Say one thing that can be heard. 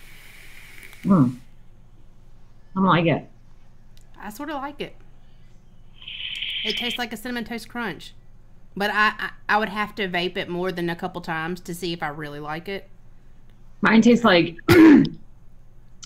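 A young woman talks casually over an online call.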